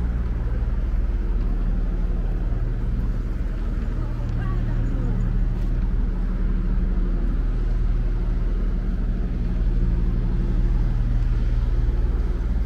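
City traffic rumbles steadily in the background.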